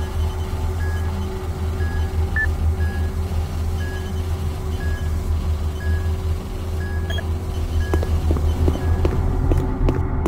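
A computer terminal beeps softly at a steady pace.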